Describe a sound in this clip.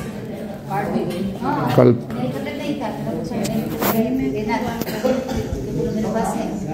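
Several men and women talk at once nearby.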